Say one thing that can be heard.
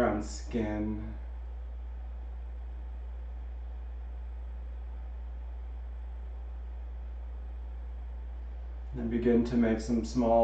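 A man speaks calmly and softly into a nearby microphone.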